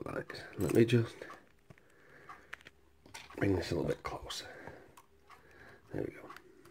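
Metal picks click and scrape softly inside a lock.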